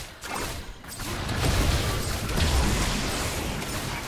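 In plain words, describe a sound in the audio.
A magic spell bursts with a hissing whoosh.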